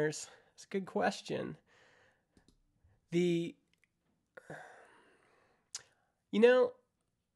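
A man speaks casually and close to a microphone, in short bursts with pauses.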